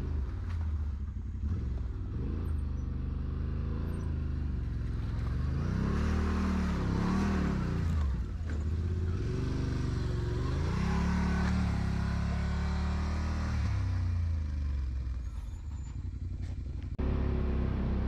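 An off-road vehicle's engine revs up and down, close by.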